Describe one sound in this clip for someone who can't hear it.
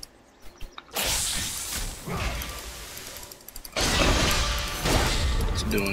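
Magic blasts and clashing combat effects crackle and boom.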